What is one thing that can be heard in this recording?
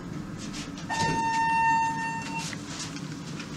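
An elevator chime rings.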